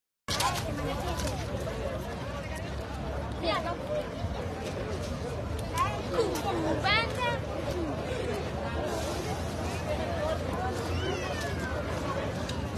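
A large crowd of people talks and shouts outdoors.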